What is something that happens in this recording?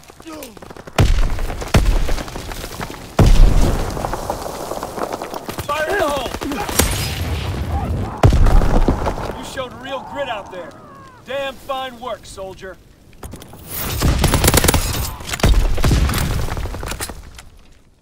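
Loud gunshots crack and boom.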